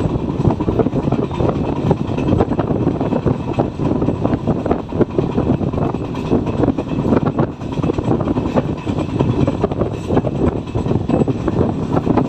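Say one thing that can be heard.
Wind rushes past an open train window.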